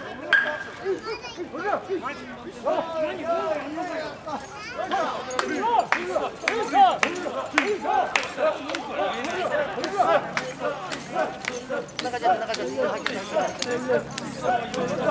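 A crowd of men chant rhythmically in unison close by, outdoors.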